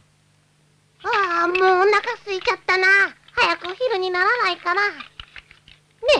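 A boy speaks in a high, squeaky puppet voice with animation.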